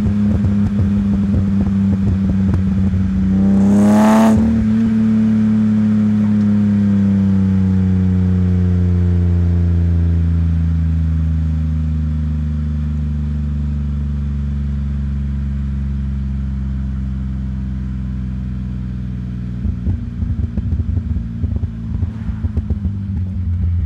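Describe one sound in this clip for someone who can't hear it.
A car engine hums steadily as the car drives along a road.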